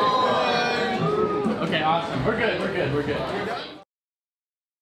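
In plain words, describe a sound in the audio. A group of people sing together.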